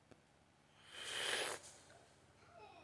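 A young man sniffs loudly.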